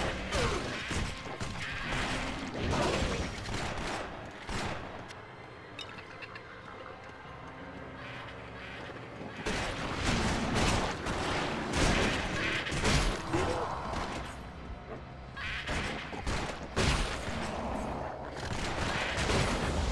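Weapons clash and slash in quick, loud bursts of fighting.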